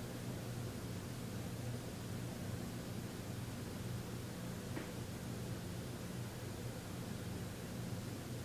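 A man hums a low, steady tone close by.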